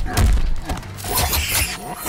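Icy blasts crackle and hiss.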